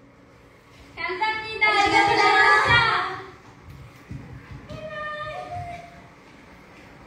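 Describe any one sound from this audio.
Young women shout and cheer excitedly, heard close through microphones.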